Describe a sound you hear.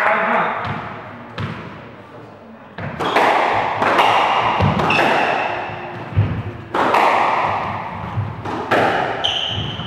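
A squash ball smacks against the walls with sharp echoing bangs.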